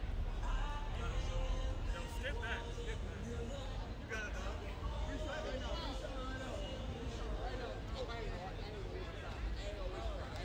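A crowd of young men and women chatter and call out nearby outdoors.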